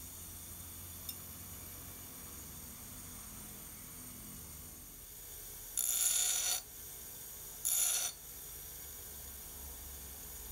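A bench grinder motor hums steadily.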